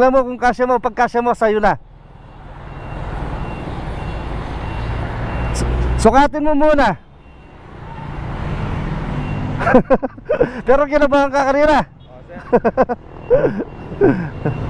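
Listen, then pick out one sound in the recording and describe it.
A young man talks close by in a cheerful voice.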